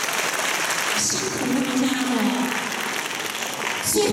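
A large choir sings together in an echoing hall.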